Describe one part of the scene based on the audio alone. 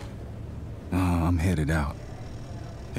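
A man speaks briefly in a casual tone.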